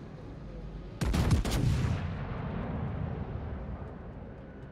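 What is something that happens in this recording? Heavy naval guns fire a thundering salvo that rumbles away.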